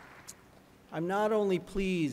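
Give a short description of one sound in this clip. A man speaks calmly through a microphone over loudspeakers in a large echoing hall.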